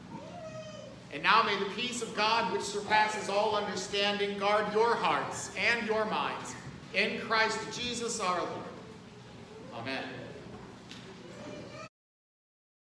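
A middle-aged man speaks with animation into a microphone in an echoing hall.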